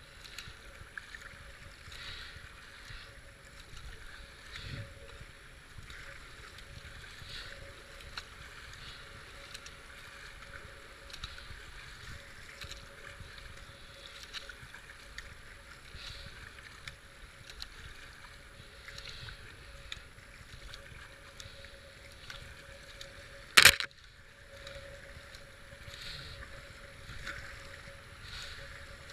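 Fast floodwater rushes and churns around a kayak.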